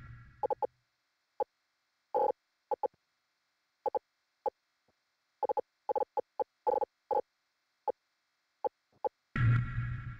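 Short menu clicks tick again and again at an uneven pace.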